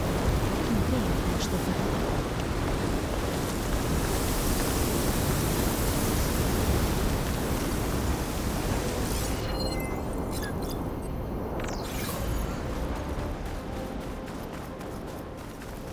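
Wind roars in a strong sandstorm.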